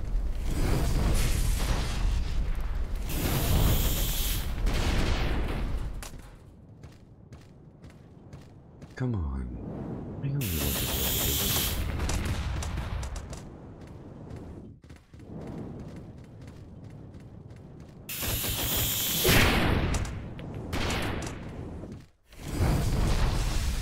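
Game gunfire blasts rapidly.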